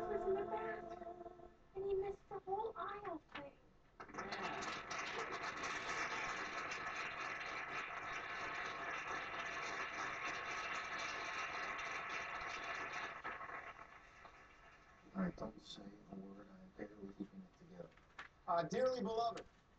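A young woman speaks casually, close to the microphone.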